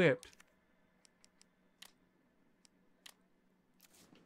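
Soft clicks tick now and then.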